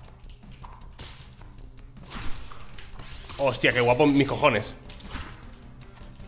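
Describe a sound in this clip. Sword swings whoosh and strike slimes with squelching hits.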